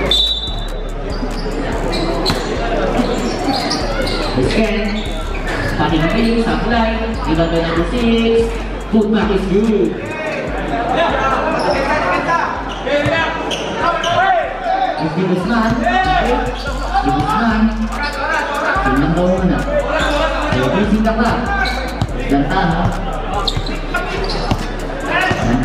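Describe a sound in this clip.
A crowd cheers and chatters around a court.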